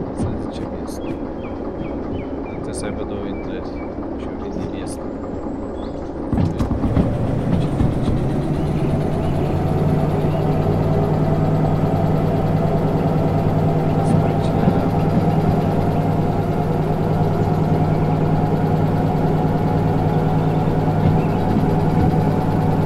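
A diesel locomotive engine drones steadily.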